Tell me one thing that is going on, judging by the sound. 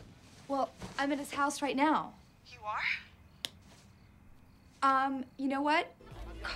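A young woman speaks quietly into a phone, close by.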